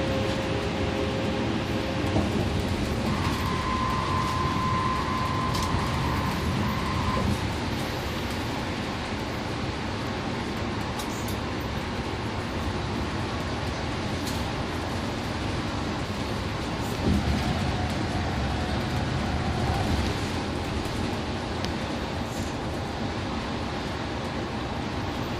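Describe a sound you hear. A bus engine hums steadily from inside the cabin.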